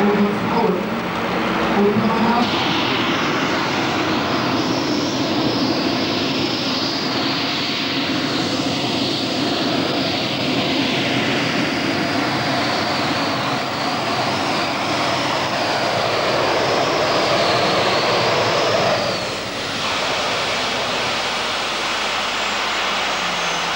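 A powerful pulling tractor engine roars loudly.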